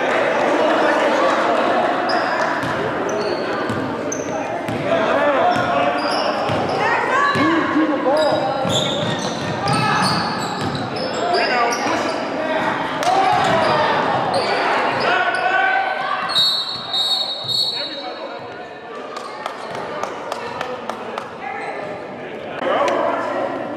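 Young players and spectators shout and call out.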